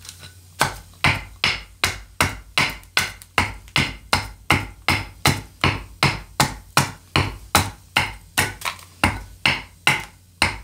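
A hammer strikes a wooden wedge in quick, steady blows, splitting wood.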